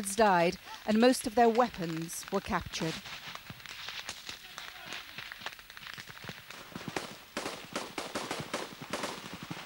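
Gunshots and blasts crack in the distance.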